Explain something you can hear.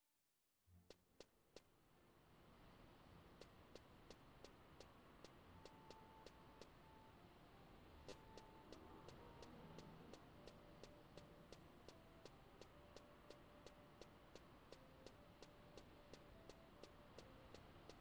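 Footsteps tap steadily on hard stone.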